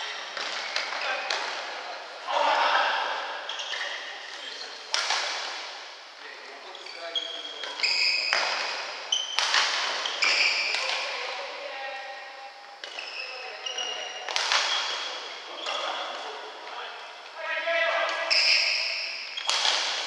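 A ball thuds when kicked in an echoing hall.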